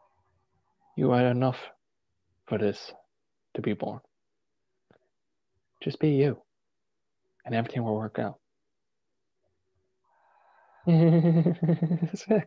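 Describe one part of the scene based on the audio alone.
A young man speaks calmly in short phrases over an online call.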